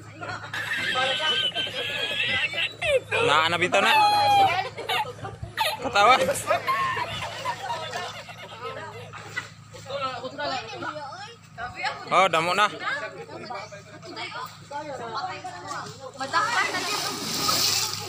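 Young women laugh and shout close by.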